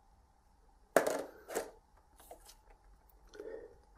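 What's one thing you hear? Trading cards scrape and click as a hand pulls them from a metal tin.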